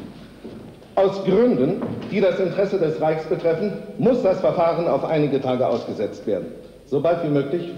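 A middle-aged man speaks loudly and forcefully.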